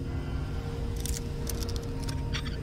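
A lock pick scrapes and clicks in a lock.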